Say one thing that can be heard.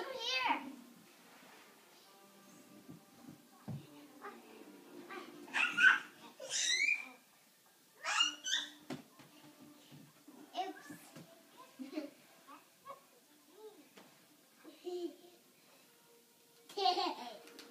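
Young children squeal and shout playfully nearby.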